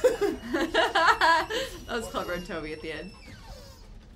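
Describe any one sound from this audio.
A young woman laughs loudly close to a microphone.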